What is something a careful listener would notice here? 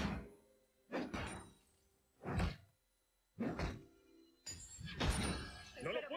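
Game spell effects burst and crackle in quick bursts.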